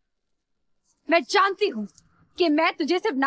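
A woman speaks sharply and with strong emotion.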